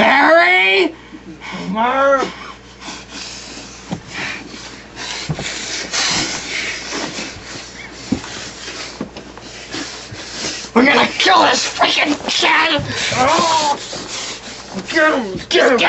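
Young men shout and shriek loudly close by.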